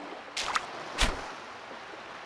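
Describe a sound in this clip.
A fishing float plops into the water.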